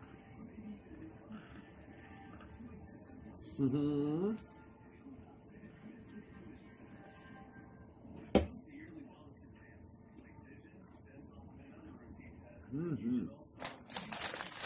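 A middle-aged man crunches on a cookie.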